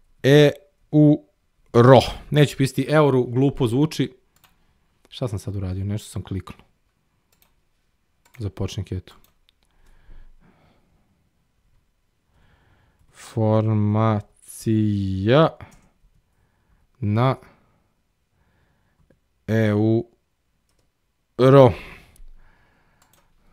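A man speaks calmly and in short bursts into a close microphone, with pauses between phrases.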